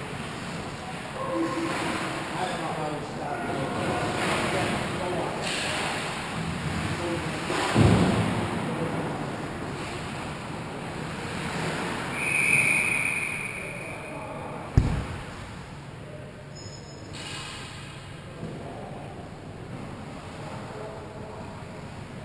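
Ice skates scrape and glide in a large echoing rink.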